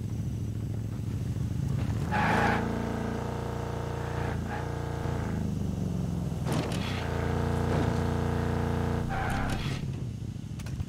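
A heavy truck engine drones as the truck drives along a road.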